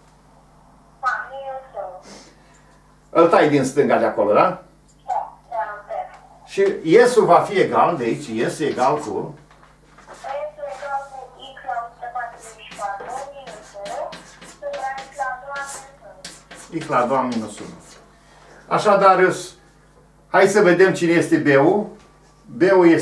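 An elderly man speaks in a lecturing tone, close by in a room with some echo.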